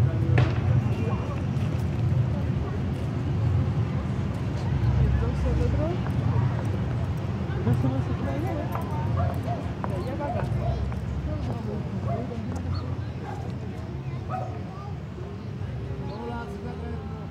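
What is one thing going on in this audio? Men and women chatter indistinctly at a distance outdoors.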